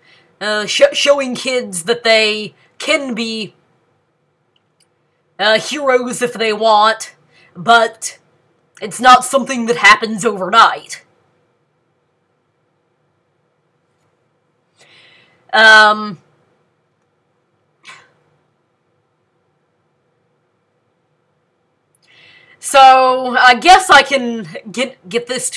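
A young woman talks close to a microphone, in short bursts with pauses.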